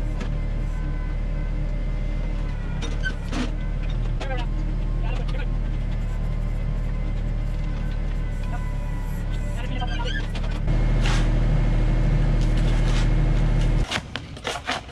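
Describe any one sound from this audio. A small digger's engine rumbles steadily close by.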